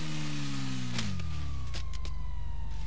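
A motorcycle crashes into a wall.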